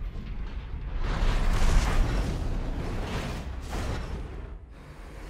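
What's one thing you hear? A robot's engines roar and thrust in a video game.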